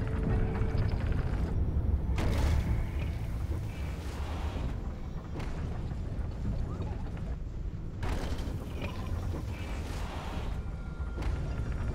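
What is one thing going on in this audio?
Wind blows in a steady low roar.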